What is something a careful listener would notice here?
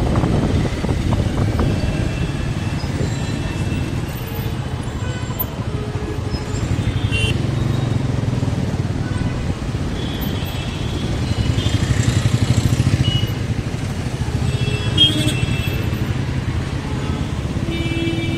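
Traffic hums steadily on a busy street.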